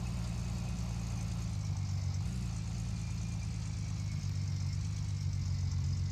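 A trailer rattles behind a pickup truck.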